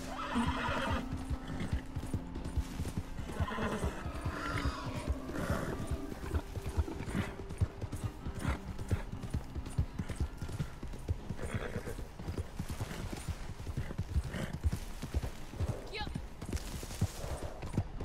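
Horse hooves thud steadily on dry ground.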